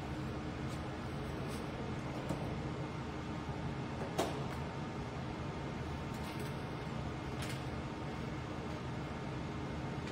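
A cable plug clicks into a socket on a computer.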